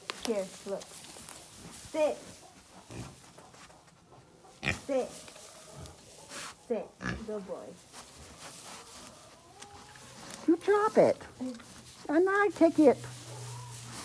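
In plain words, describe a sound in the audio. Pigs grunt and squeal up close.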